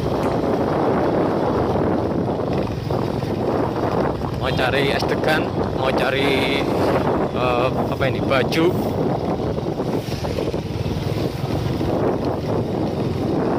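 A motorcycle engine hums steadily up close as it rides along.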